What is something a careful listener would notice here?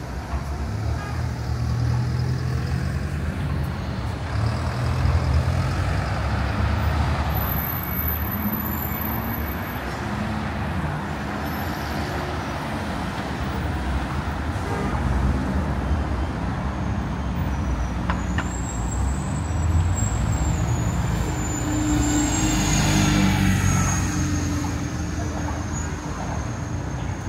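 Cars drive past on a busy street outdoors.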